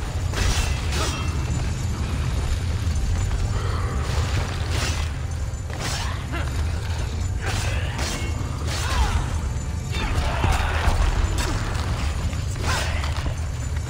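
Swords swish and clang in a fast fight.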